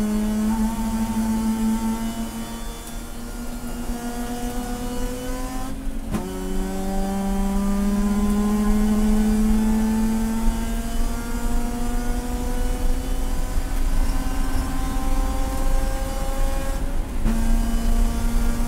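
A race car engine roars loudly from close by, climbing steadily in pitch.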